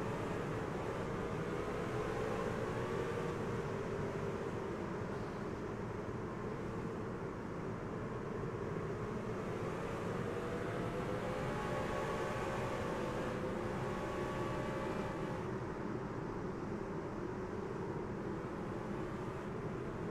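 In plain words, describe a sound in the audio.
Several racing engines drone loudly together at high speed, their pitch wavering.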